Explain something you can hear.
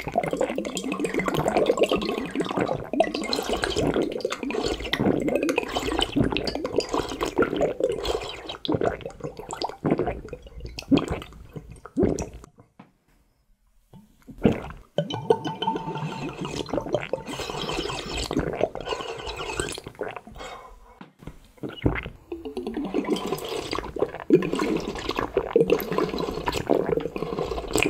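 A man gulps down a drink loudly, close up.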